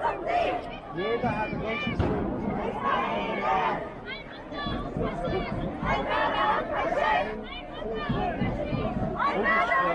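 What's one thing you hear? A street crowd murmurs and talks in the background.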